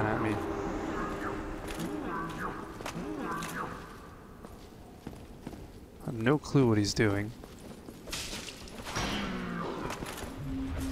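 Heavy armored footsteps clank on a stone floor.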